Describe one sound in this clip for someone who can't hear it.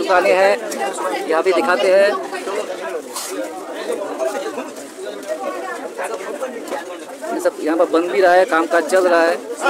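A man talks loudly close by.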